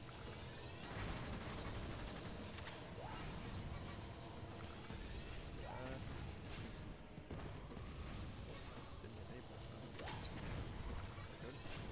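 Explosions boom in bursts.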